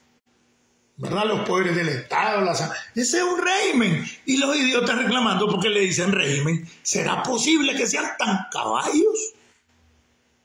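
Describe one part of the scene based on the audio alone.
An elderly man speaks with animation close to a phone microphone.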